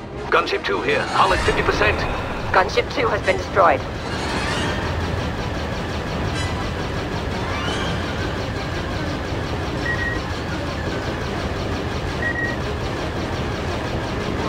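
A spacecraft engine roars steadily.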